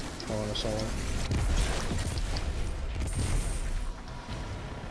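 A deep explosion rumbles and slowly fades.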